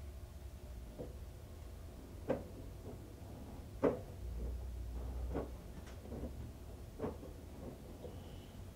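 Wet laundry thuds and sloshes inside a turning washing machine drum.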